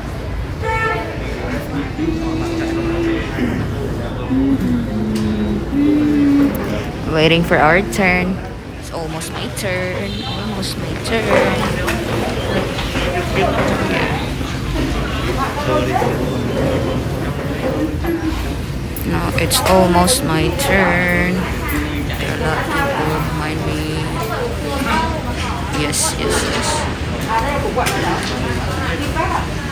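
A young woman talks close by, softly through a mask.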